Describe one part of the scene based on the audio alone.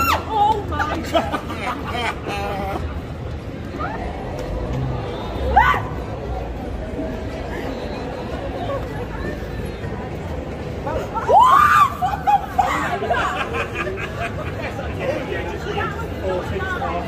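Adults chatter in the background on a busy street.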